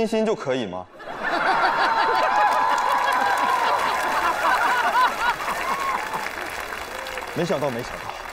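An audience laughs and applauds loudly.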